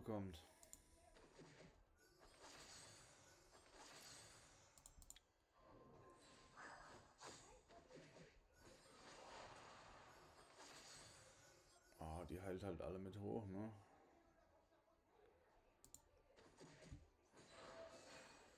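Game spell effects whoosh and chime.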